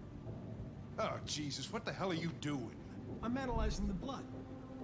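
An older man exclaims gruffly.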